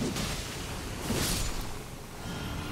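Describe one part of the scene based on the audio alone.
A magical whoosh swells and fades.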